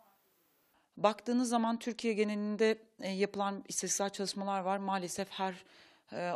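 A woman speaks calmly and close into a microphone.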